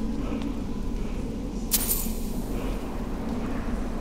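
Coins jingle as a purse is picked up.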